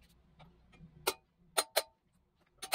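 A hammer taps sharply on metal.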